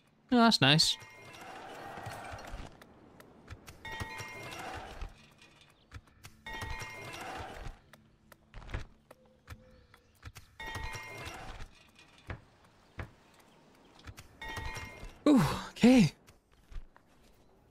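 Short chimes and rustling sound as game menus open.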